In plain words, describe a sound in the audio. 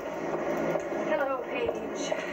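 A young woman talks nearby.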